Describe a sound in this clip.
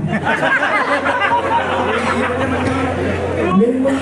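A young woman speaks through a microphone and loudspeakers.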